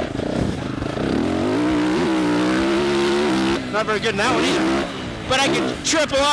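A dirt bike engine revs hard and close, its pitch rising and falling with gear changes.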